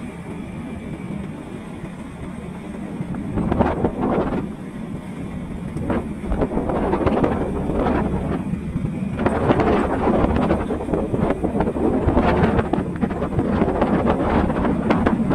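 A motorcycle engine hums steadily as it rides along a road.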